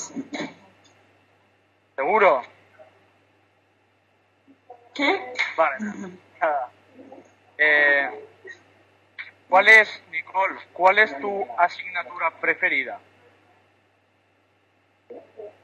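Teenage girls and boys talk and laugh over an online call.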